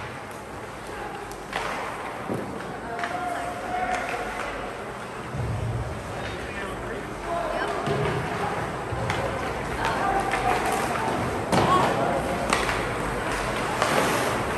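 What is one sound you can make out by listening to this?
Ice skates scrape and carve across an ice rink.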